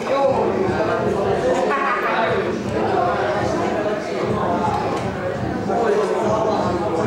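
Young men talk.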